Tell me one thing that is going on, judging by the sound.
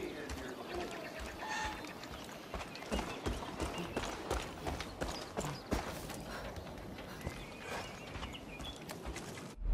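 Footsteps crunch on dry dirt.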